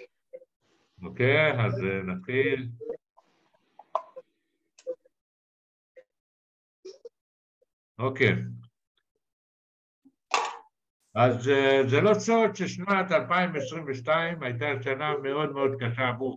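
An elderly man talks calmly through an online call.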